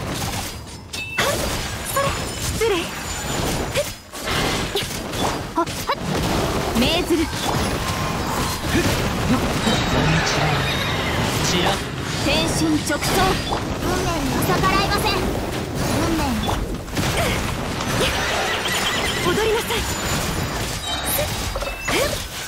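Game combat effects whoosh, clash and burst in quick succession.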